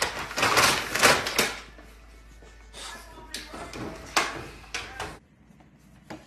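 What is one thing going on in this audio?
A puppy's paws patter and scrabble on a wooden floor.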